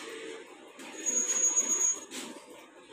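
A cash machine beeps.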